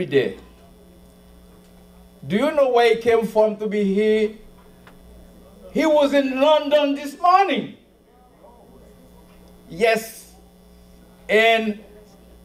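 A middle-aged man speaks with animation through a microphone and loudspeakers, pausing between phrases.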